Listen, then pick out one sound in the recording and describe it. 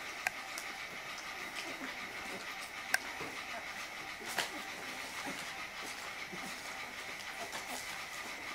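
Puppies snuffle and lick at each other.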